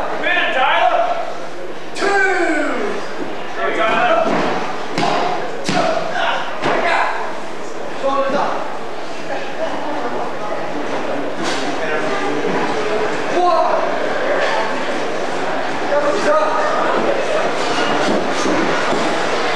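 Bodies thud and shift on a wrestling mat.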